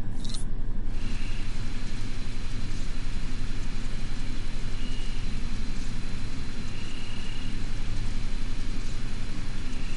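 A handheld electronic device hums and whines steadily.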